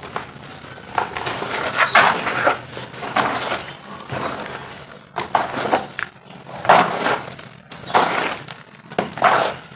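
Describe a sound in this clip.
Water pours and splashes into powder.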